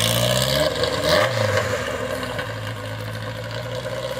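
A car drives away as its engine sound fades.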